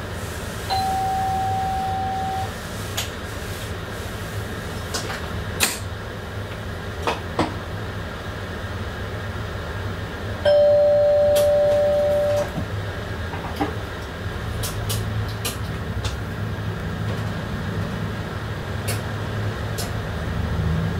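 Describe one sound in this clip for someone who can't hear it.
A train engine hums low and steadily.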